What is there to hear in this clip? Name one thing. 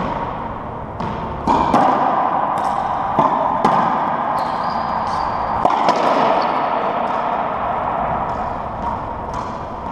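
A racquetball smacks off racquets and walls, echoing around the court.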